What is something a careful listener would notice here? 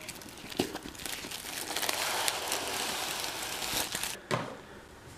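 Plastic wrap crinkles and rustles as it is peeled off.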